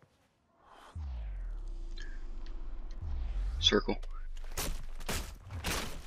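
Punches thud during a scuffle.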